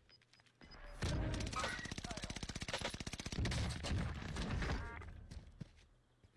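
Gunfire bursts loudly in a video game.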